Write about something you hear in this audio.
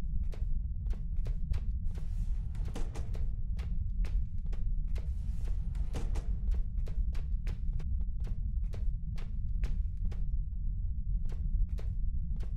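Footsteps clang steadily on a metal grate.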